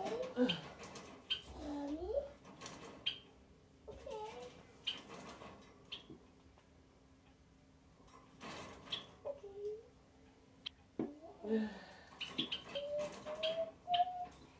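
A young woman groans and moans nearby, as if in pain.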